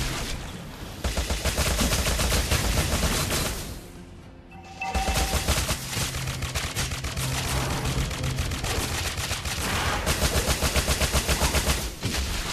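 Game weapons strike with repeated sharp hits.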